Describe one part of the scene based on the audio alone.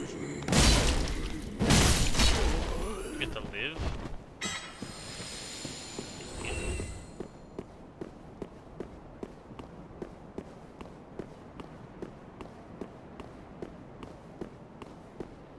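Armored footsteps clank steadily on stone.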